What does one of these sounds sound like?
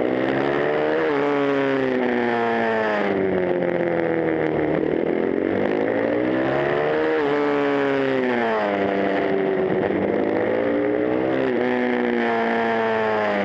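A motorcycle engine roars close by, its pitch rising and falling as it shifts gears.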